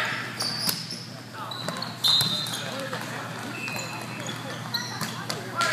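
Sneakers squeak on a hard floor.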